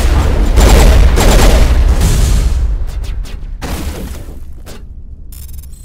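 Energy weapons crackle and blast in bursts.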